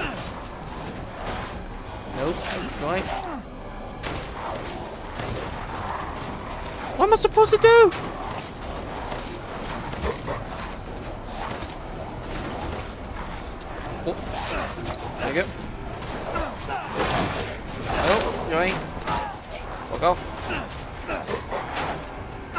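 A monster growls and snarls loudly.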